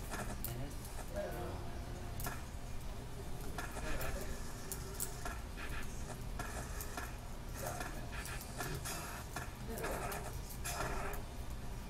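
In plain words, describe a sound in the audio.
Skateboard wheels roll and grind over concrete and metal rails.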